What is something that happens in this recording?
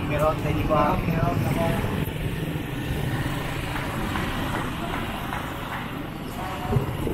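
A motorcycle engine passes nearby.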